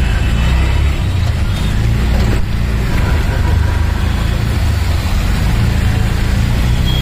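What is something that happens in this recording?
A vehicle engine rumbles steadily from inside.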